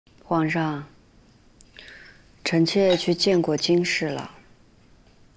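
A young woman speaks calmly and respectfully nearby.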